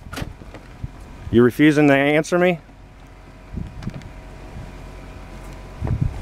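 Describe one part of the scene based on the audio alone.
A door opens and swings shut.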